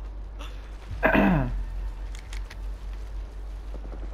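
Water splashes as footsteps wade through it.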